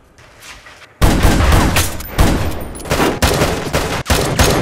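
Gunshots crack loudly in rapid bursts, echoing.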